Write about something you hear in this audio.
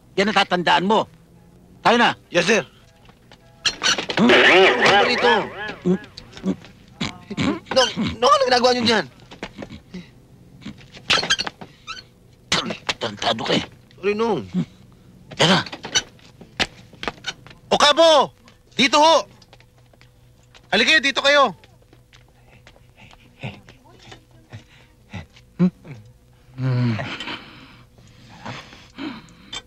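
A young man answers, close by.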